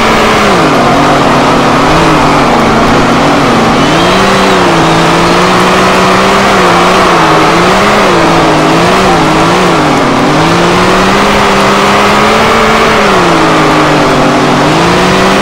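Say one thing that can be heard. A racing car engine roars loudly, its pitch rising and falling as it revs up and shifts gears.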